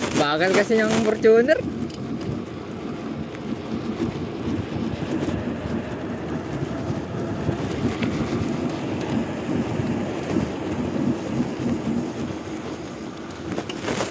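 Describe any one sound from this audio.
Bicycle tyres roll over a concrete road.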